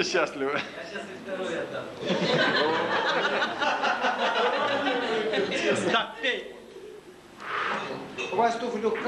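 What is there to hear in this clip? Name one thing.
A young man speaks with animation into a microphone, heard through loudspeakers in an echoing hall.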